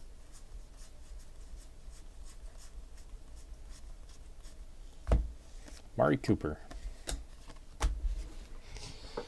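Trading cards rustle and click as hands shuffle through them.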